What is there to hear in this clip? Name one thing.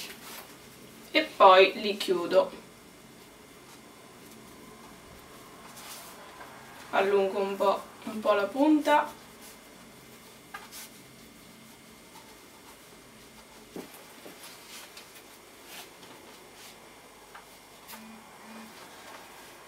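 Hands softly rustle pastry dough as they roll it up.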